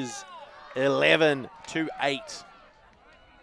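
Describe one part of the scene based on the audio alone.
Young men cheer and shout close by outdoors.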